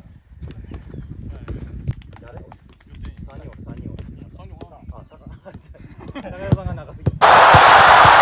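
A football thumps as it is kicked back and forth.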